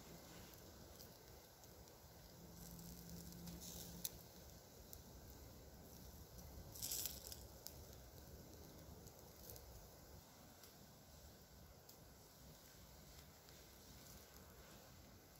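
Lamb fat sizzles and crackles over charcoal.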